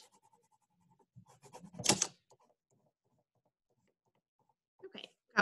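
A crayon scratches on paper.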